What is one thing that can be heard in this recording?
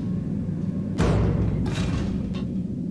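Heavy metal elevator doors slide open with a rumble.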